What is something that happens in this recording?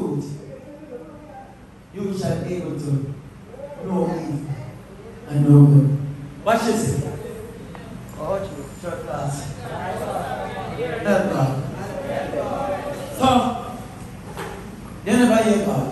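A man preaches with passion into a microphone, heard through loudspeakers in an echoing room.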